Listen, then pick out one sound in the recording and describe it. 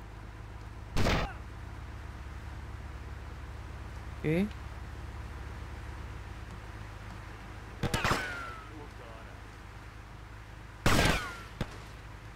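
Rifle shots ring out with a sharp crack.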